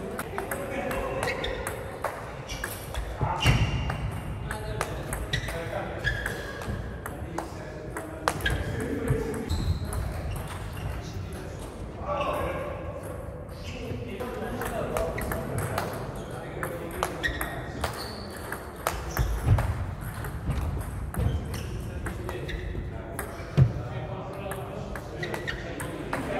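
Table tennis balls click sharply on paddles and tables in a large echoing hall.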